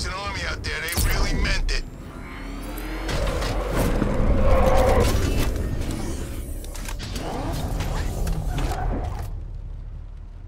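A powerful car engine rumbles and revs nearby.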